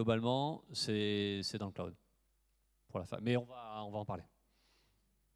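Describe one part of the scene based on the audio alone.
A man speaks through a microphone in a large hall, pausing often.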